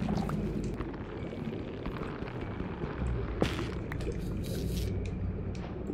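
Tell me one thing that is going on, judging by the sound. A block is dug out with soft, repeated thuds.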